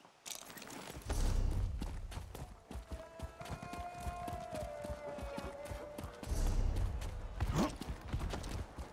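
A horse's hooves clop steadily on cobblestones.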